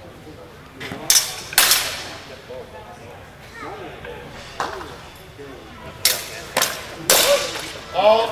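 Longswords clash and strike sharply.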